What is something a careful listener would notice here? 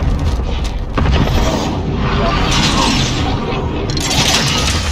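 A rocket engine roars loudly.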